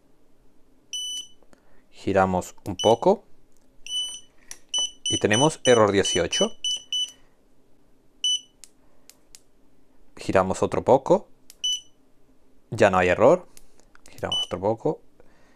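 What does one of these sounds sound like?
An electronic controller beeps in short, high bursts.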